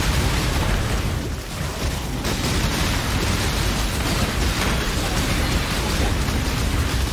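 Low booming game effects rumble throughout.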